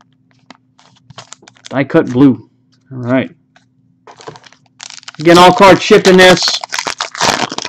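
A foil card wrapper crinkles and tears as hands open it.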